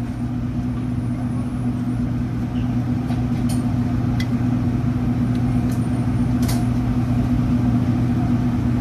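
An extractor fan hums steadily.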